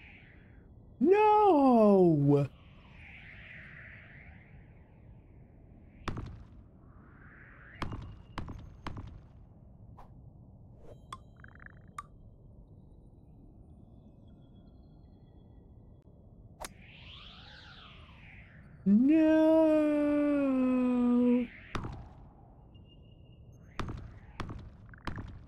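Soft whooshes sweep by as a small object flies.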